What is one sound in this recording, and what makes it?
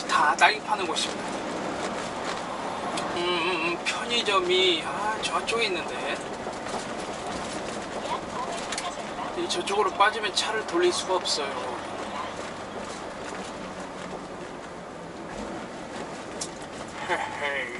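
A diesel truck cruises down a road, heard from inside the cab.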